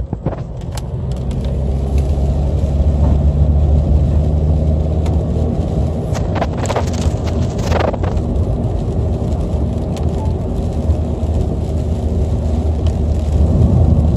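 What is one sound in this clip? Tyres hiss on a wet road and grow louder.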